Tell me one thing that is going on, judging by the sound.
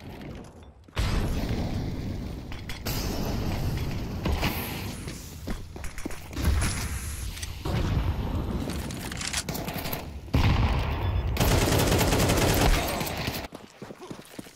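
Gunfire rattles in rapid bursts.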